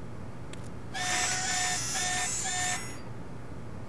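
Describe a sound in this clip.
An electronic machine beeps and chirps loudly in a quick run of tones.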